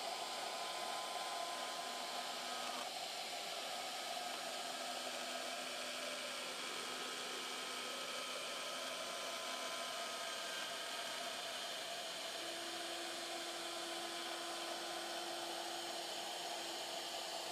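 A small machine whirs steadily.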